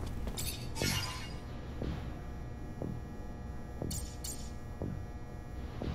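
Soft menu clicks and swishes sound as selections change.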